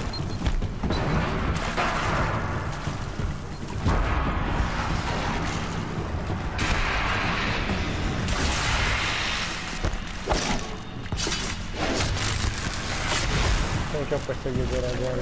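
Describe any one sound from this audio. Heavy metallic crashes and blasts ring out in a fight.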